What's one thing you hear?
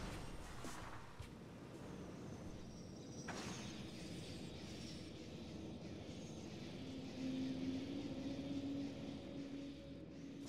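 A metal ball rolls and rumbles through a narrow tunnel.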